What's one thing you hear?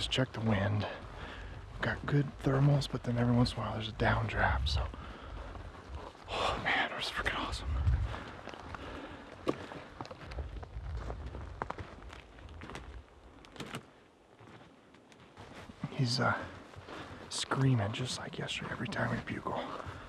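A man talks quietly and close up, a little out of breath.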